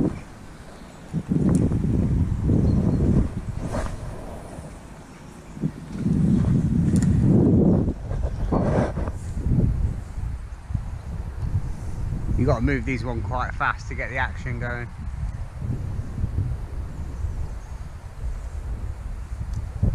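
Wind buffets the microphone in gusts outdoors.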